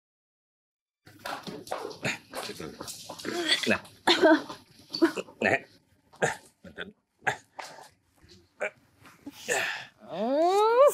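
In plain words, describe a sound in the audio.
A woman sobs and wails close by.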